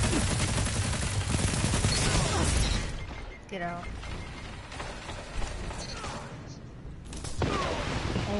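Video game gunfire crackles in bursts.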